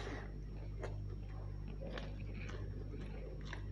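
Fingers squelch through rice and curry on a plate.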